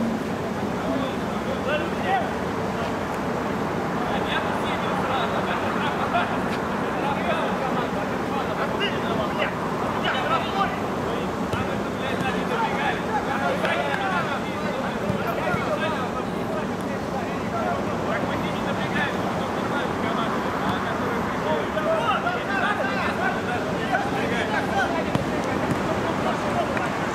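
Players shout to each other across the pitch.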